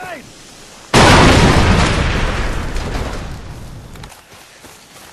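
A big explosion booms and rumbles away.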